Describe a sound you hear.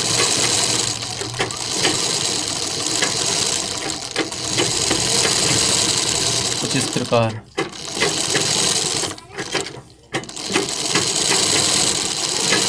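A sewing machine runs with a fast, steady whirring and clatter, pausing briefly now and then.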